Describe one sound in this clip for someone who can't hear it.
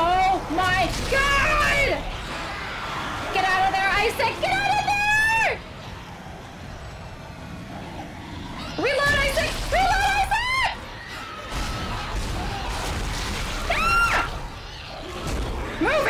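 A young woman talks and exclaims loudly and excitedly into a close microphone.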